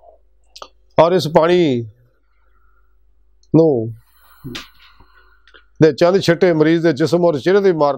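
An elderly man chants in a melodic, drawn-out voice close to a microphone, in short phrases with pauses.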